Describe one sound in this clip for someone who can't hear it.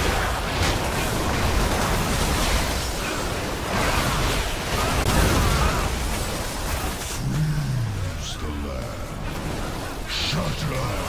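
Crackling lightning spells and explosions clash in a chaotic battle.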